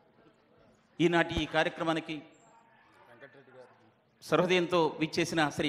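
A man speaks loudly through a microphone and loudspeakers in a large hall.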